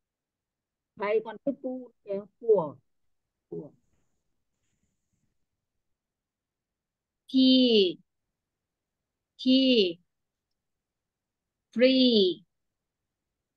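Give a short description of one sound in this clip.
A woman speaks calmly over an online call, pronouncing single words slowly and clearly.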